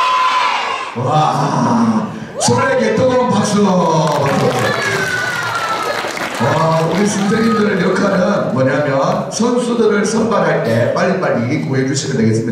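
A middle-aged man speaks with animation through a microphone over loudspeakers.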